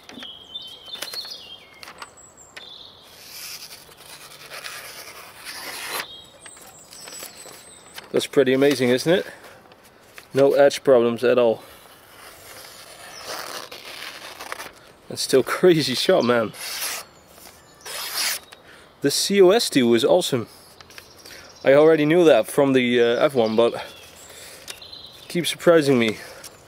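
A knife blade slices through a sheet of paper with a soft rustle.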